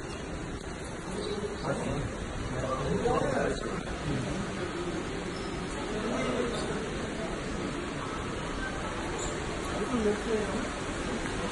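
A woman talks quietly nearby in an echoing hall.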